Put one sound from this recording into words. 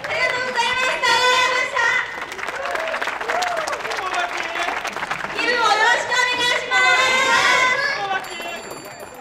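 Young women sing together through loudspeakers.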